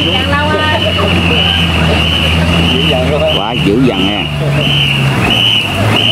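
Many paddles splash rhythmically in water.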